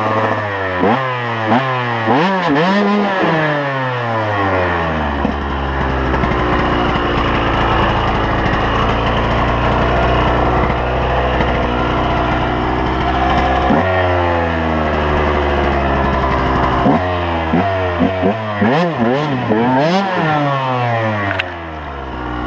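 A dirt bike engine revs hard and loud, rising and falling sharply.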